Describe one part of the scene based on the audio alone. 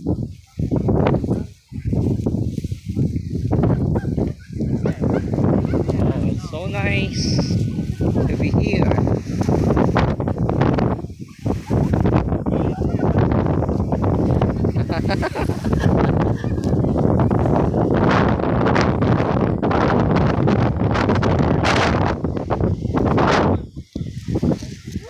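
Tall dry grass rustles in the wind.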